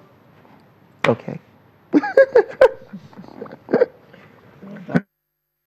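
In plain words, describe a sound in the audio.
A young man laughs in short bursts close to a microphone.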